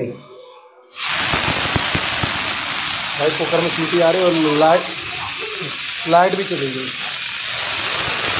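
A pressure cooker hisses loudly and steadily as steam escapes.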